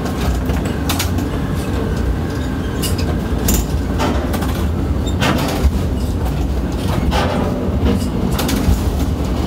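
Metal clanks and knocks sharply now and then.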